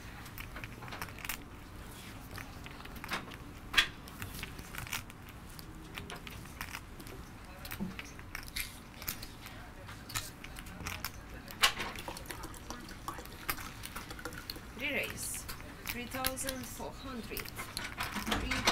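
Poker chips click and clatter together in a hand.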